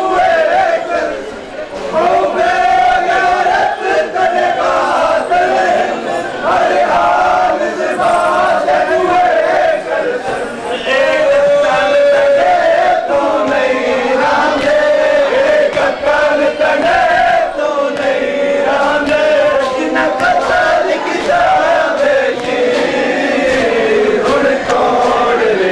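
A crowd of men chants and wails loudly together, close by.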